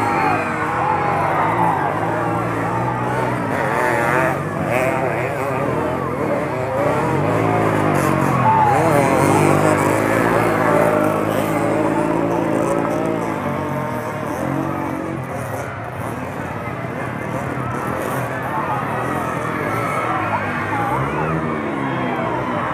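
A large outdoor crowd of men and boys chatters and calls out loudly.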